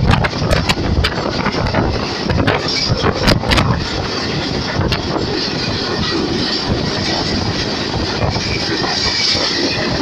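A train rumbles and clatters along the tracks at speed.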